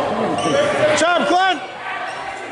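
A referee blows a whistle sharply.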